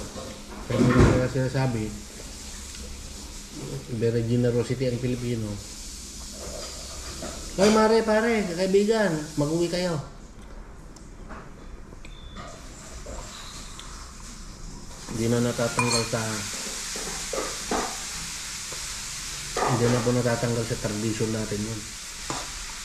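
A middle-aged man talks calmly and close by, in short bursts.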